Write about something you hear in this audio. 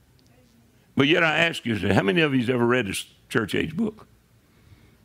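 An older man speaks loudly and with emotion into a microphone.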